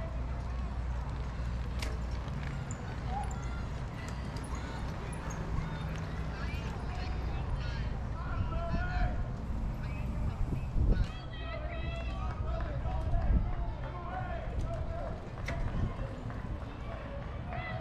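A bicycle rolls past on a dirt trail, tyres crunching softly.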